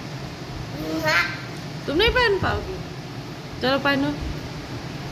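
A young girl laughs and squeals loudly up close.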